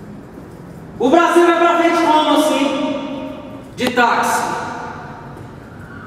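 A man sings long, loud notes that ring out in an echoing hall.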